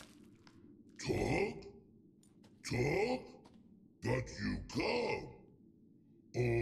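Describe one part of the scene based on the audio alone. A creature speaks in a deep, rough growl.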